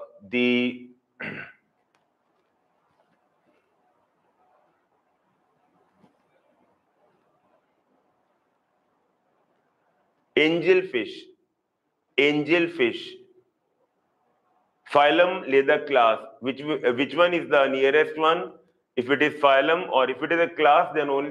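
A middle-aged man lectures calmly into a close microphone, pausing between phrases.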